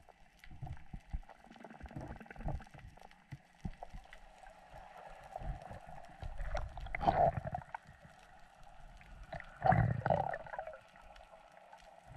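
Water sloshes and rumbles, heard muffled underwater.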